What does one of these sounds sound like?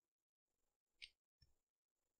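Hands handle a small plastic speaker with a light click.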